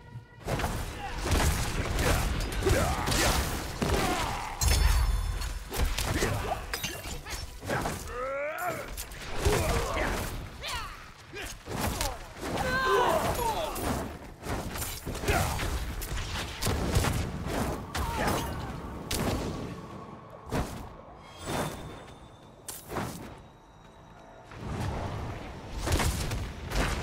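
Weapons clash and spells burst in quick, heavy blows.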